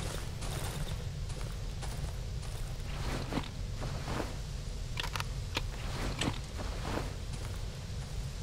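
Footsteps crunch slowly over gravel.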